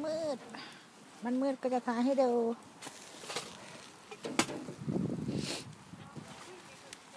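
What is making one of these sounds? Burning coals crackle and pop.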